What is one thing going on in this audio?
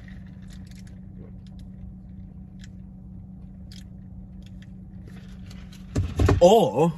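A young man sips a drink through a straw.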